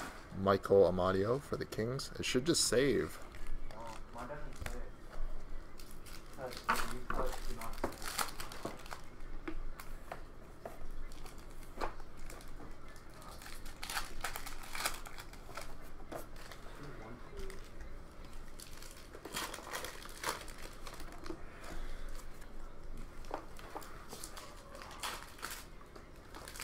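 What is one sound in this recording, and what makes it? Trading cards rustle and shuffle in hands.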